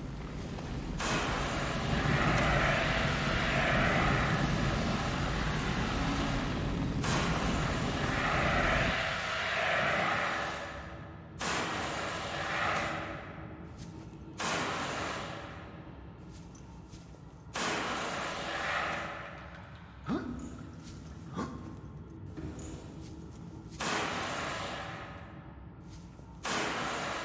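A fire extinguisher hisses in strong bursts of spray.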